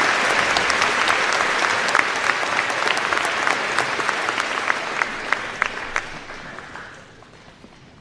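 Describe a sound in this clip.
A crowd applauds in a large echoing hall, then the clapping fades away.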